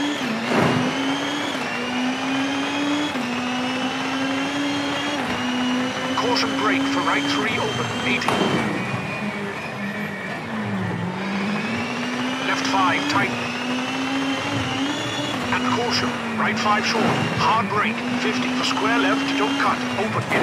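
A rally car engine drones and climbs in pitch, dropping briefly at each gear change.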